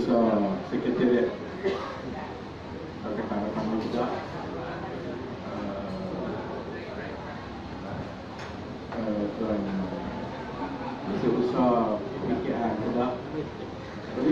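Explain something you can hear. A middle-aged man speaks calmly into a microphone over a loudspeaker, in an echoing room.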